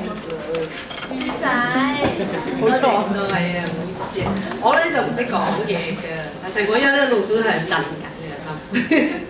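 A middle-aged woman speaks through a microphone with animation and laughs.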